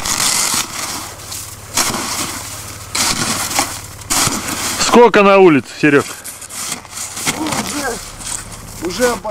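A shovel scrapes and digs into packed snow.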